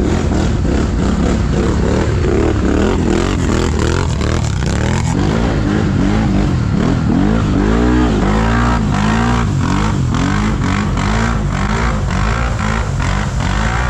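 Another quad bike engine revs nearby and fades into the distance.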